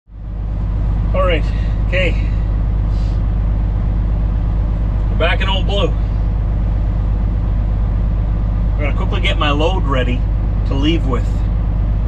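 A low steady engine rumble hums throughout.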